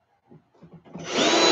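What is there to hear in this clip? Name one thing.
A cordless drill whirs.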